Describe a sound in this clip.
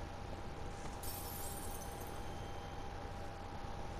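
A bright magical shimmer rings out and fades.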